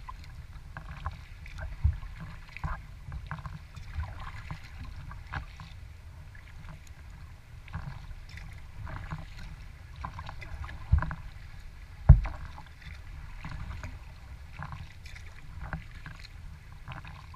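Wind rumbles outdoors across open water.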